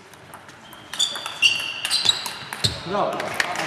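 Sports shoes squeak sharply on a wooden floor.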